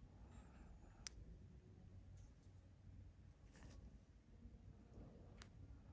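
A metal extractor tool clicks faintly against skin.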